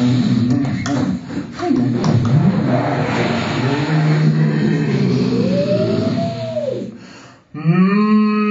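A boy makes rapid, warbling vocal sounds through cupped hands into a microphone.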